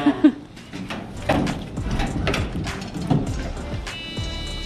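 Boots clank on metal steps as a man climbs into a truck cab.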